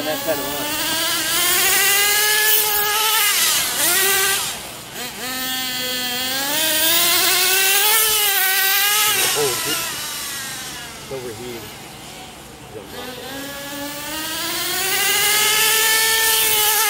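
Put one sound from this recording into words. A car engine hums and rises and falls in pitch while driving.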